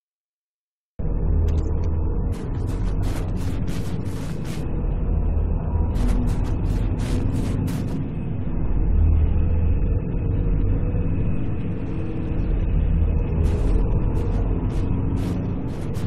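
Wind howls with a deep, steady rumble.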